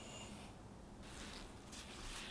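Sugar pours softly into a glass bowl.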